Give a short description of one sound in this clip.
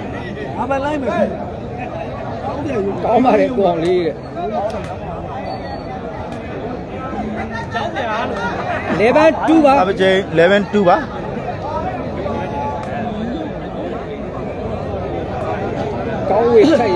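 Men in the crowd shout and cheer loudly in bursts.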